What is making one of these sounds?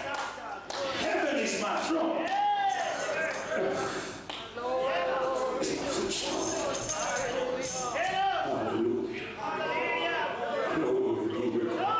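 A middle-aged man speaks with fervour into a microphone, heard through loudspeakers in an echoing hall.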